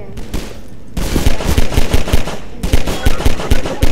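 A pistol fires rapid, loud shots.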